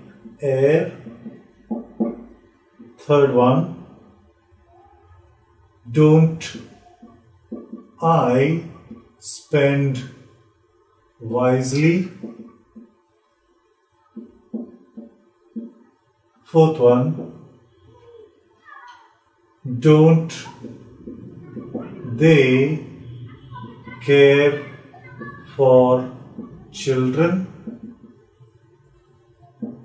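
A man speaks calmly and clearly, pausing often.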